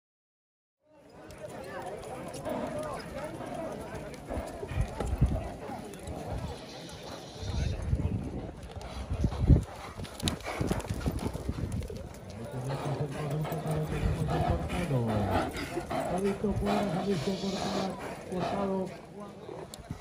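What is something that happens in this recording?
Horses' hooves thud softly on dirt.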